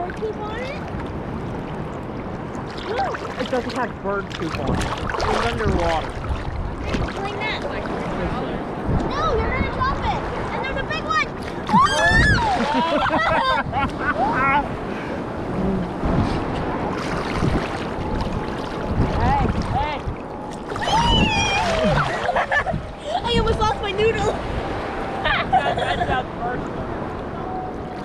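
Water sloshes and splashes close by, outdoors.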